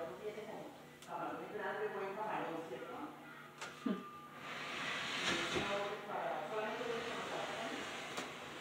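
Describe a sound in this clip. A wooden cabinet knocks and thuds as someone pushes it.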